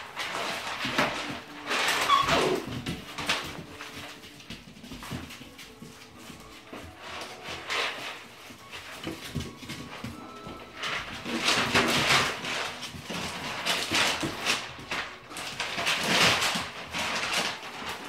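Puppies growl and yip while play-fighting.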